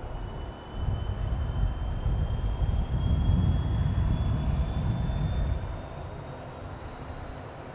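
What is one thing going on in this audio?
A helicopter's turbine engine whines steadily, its pitch slowly rising.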